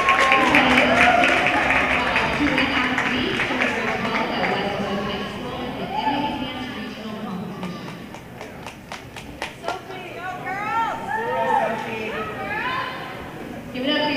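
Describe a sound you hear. Music with singing plays loudly over loudspeakers in a large echoing hall.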